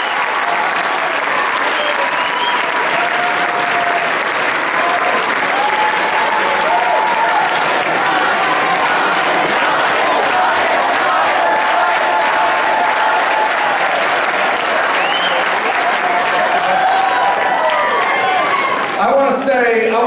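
A large crowd cheers and whistles loudly in an echoing hall.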